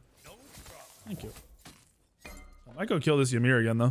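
Spell effects whoosh and clash in a fight.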